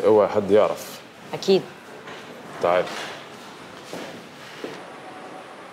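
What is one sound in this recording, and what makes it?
A man speaks close by in a hushed tone.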